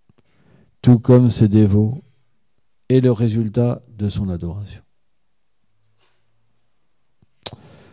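A man reads aloud slowly and calmly into a microphone.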